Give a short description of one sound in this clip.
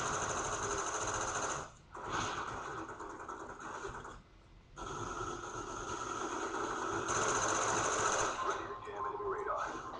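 Gunfire and game sounds play loudly from a television speaker.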